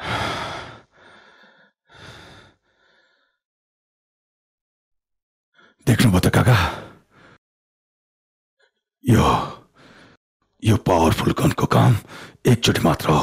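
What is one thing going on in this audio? A man speaks in a low, tense voice close by.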